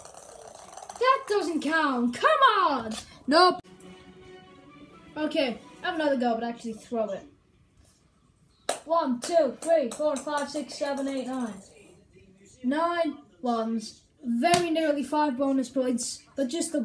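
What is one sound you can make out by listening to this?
A young child talks with animation in a high voice close by.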